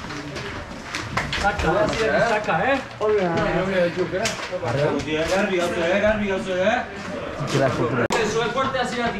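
Young men talk and shout loudly in an echoing room.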